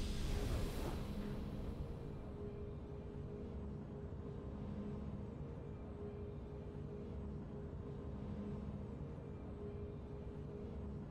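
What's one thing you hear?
Triumphant game music plays softly and steadily.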